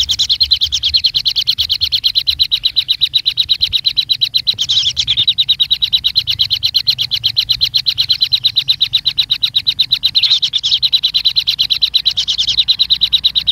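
Kingfisher nestlings beg with rapid, unbroken chirping.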